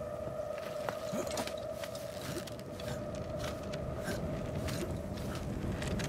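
A person climbs a creaking wooden ladder.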